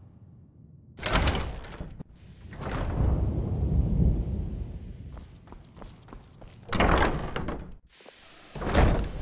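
A heavy wooden door creaks open.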